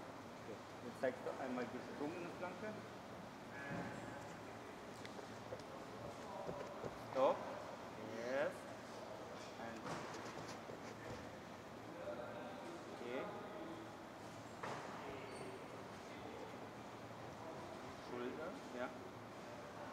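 A man speaks calmly nearby in an echoing hall.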